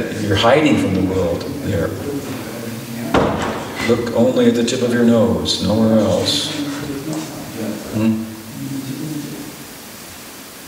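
An older man speaks calmly and expressively into a microphone close by.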